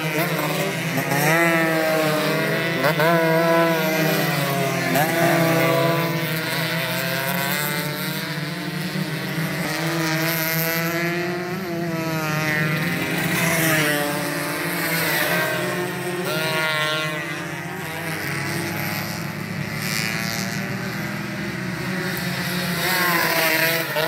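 Motorcycle engines roar as bikes race past.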